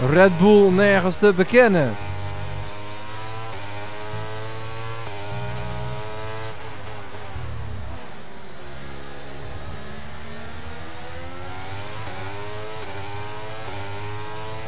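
A racing car engine roars at high revs, rising in pitch and dropping with each quick gear change.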